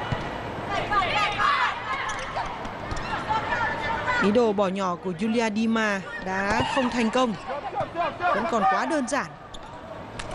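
A volleyball is struck by hand.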